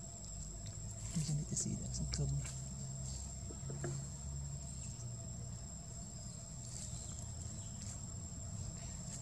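A monkey chews and smacks on soft fruit close by.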